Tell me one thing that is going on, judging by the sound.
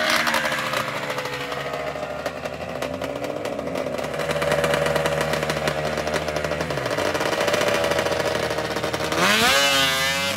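A snowmobile engine idles with a loud rumble close by.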